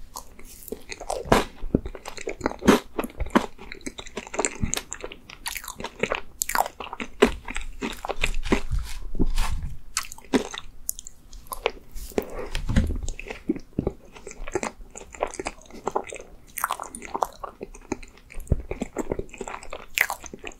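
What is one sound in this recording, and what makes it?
A young man chews and smacks his lips wetly, very close to a microphone.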